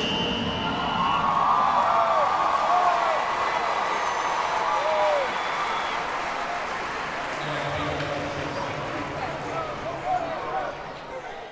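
Young men whoop and shout nearby.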